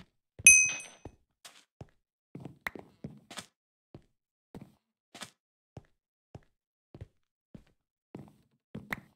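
Footsteps tap steadily on wooden and stone blocks.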